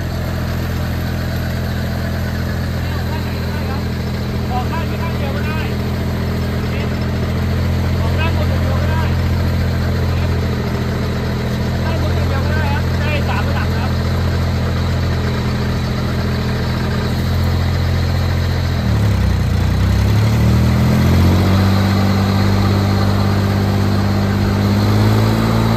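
A sprayer fan blows out mist with a rushing hiss.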